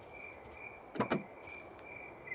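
A car boot pops open with a clunk.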